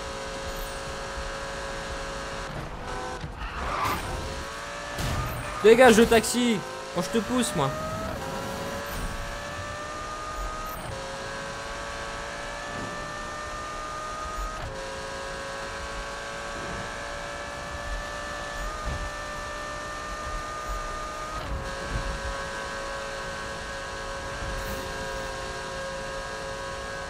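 A sports car engine roars at high speed, with its pitch rising and dropping through gear shifts.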